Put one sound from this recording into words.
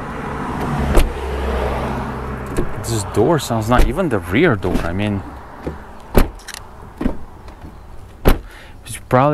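A car door slams shut with a heavy thud.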